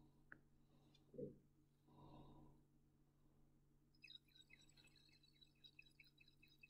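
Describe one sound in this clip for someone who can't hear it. Liquid swirls softly inside a glass flask.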